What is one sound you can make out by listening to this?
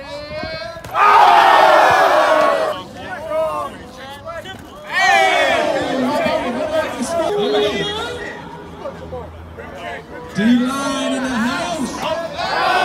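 A crowd of young men cheers and shouts loudly outdoors.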